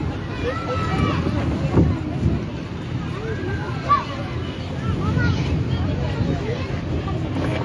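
A crowd of children chatters and calls out nearby, outdoors.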